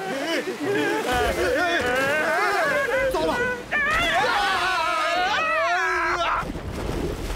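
A man shouts in panic in a high, strained voice.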